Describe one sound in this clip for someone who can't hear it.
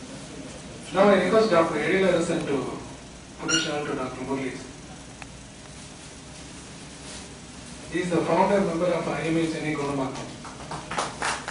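A man speaks through a microphone and loudspeaker in an echoing hall.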